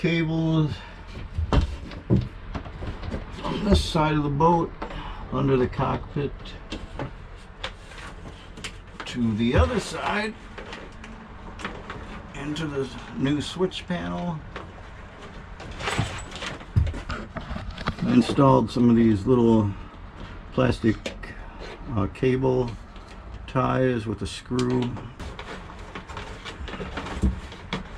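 Wires rustle and tap as they are handled close by.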